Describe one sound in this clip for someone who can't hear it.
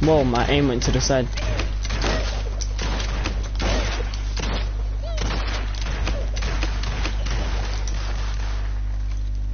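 A gun fires in quick bursts.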